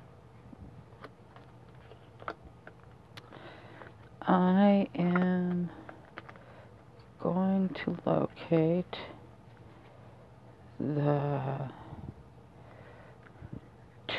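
Playing cards flick and rustle as they are shuffled by hand.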